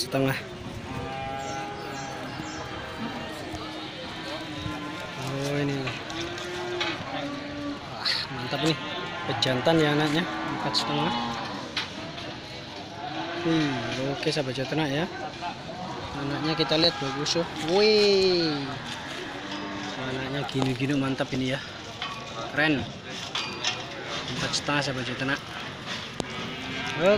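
Goats bleat nearby.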